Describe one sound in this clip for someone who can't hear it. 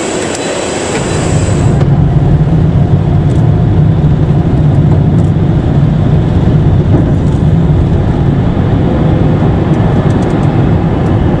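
Jet engines roar steadily, heard from inside a plane.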